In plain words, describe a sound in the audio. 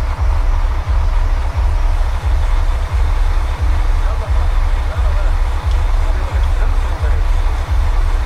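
A machine pump throbs with a steady, deep, rhythmic pulse.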